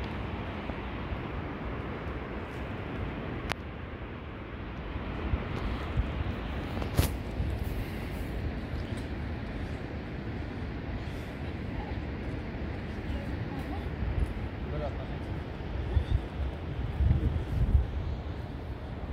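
Footsteps scrape and crunch on rock and gravel.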